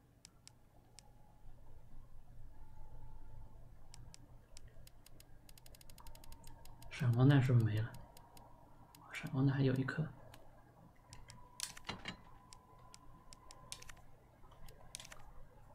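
Soft menu clicks tick as a selection cursor moves through a list.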